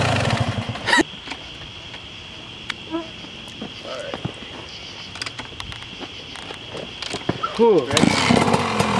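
A dirt bike engine idles with a low burble.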